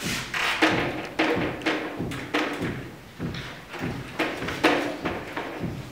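An eraser wipes across a whiteboard.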